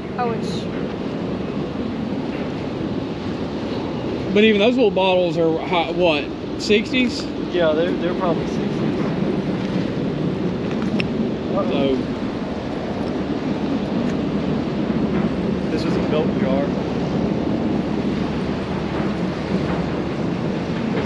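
A steady wind blows outdoors.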